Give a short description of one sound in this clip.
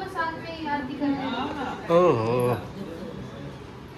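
A young man laughs softly.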